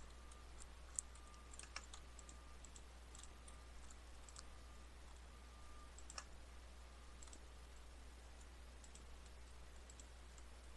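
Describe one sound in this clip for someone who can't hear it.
Blocks crunch softly as they are placed and broken, with short clicks now and then.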